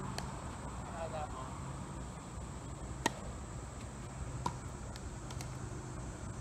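Paddles hit a ball back and forth with sharp pops.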